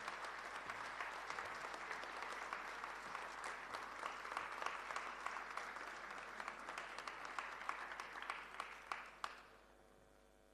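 An audience applauds steadily in a large hall.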